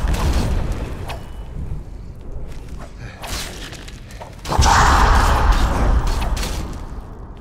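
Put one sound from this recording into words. Swords clash and strike armour in a fight.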